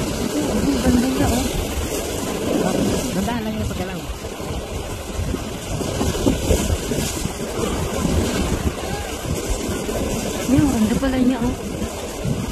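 Choppy water splashes and laps.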